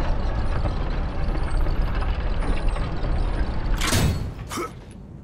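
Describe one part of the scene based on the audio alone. A large wooden wheel rumbles and grinds as it turns.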